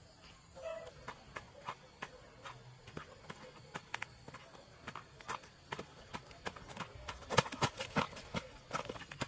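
Footsteps crunch on dry leaves along a dirt path.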